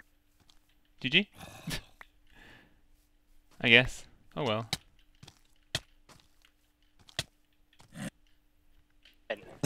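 A zombie groans gruffly.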